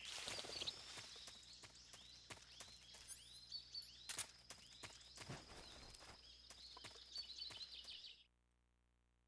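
A soldier crawls through grass with soft rustling.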